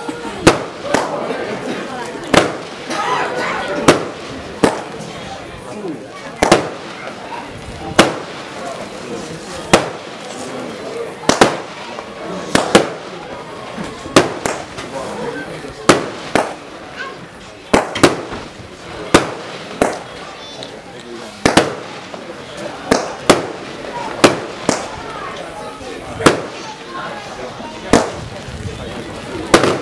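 Fireworks burst with sharp, echoing bangs over and over.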